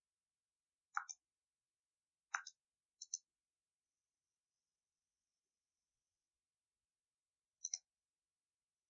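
Short electronic chimes sound a few times.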